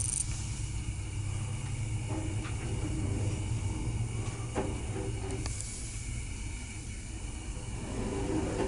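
An elevator hums steadily as it moves up.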